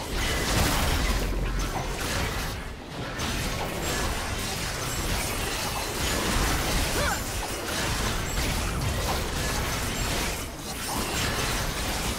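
A large monster roars and thuds as it is attacked.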